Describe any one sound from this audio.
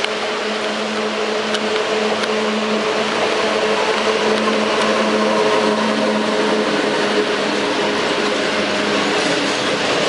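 An electric locomotive hums loudly as it passes close by.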